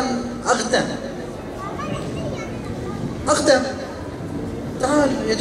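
A man speaks passionately into a microphone, his voice echoing through a loudspeaker in a large hall.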